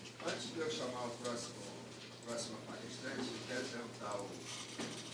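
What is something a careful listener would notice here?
A middle-aged man speaks steadily into a microphone.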